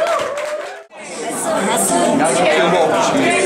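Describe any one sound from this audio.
A crowd of men chant and sing loudly together.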